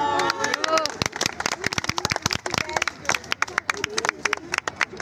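A group of students clap their hands rapidly.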